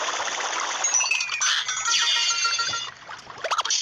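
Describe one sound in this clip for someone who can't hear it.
A toy machine whirs and jingles with bright electronic tones.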